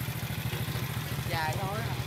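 A motor scooter approaches.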